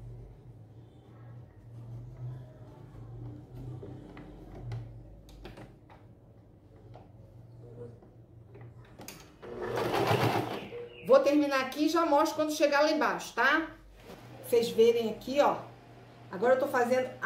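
A sewing machine hums and stitches quietly.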